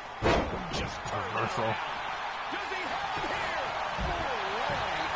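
A crowd cheers in the background.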